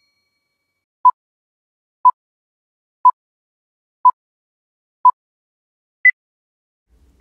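A countdown beeps once a second and ends on a higher beep.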